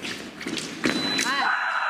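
An electronic scoring box beeps.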